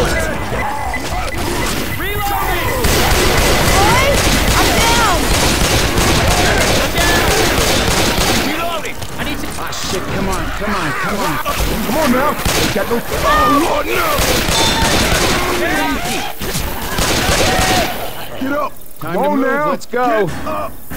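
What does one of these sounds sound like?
A man talks with animation into a microphone close by.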